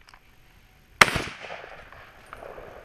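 A gunshot cracks loudly and echoes across open ground.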